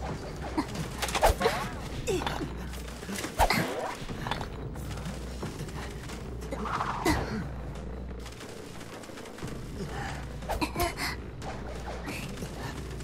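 Wheelchair wheels roll and creak.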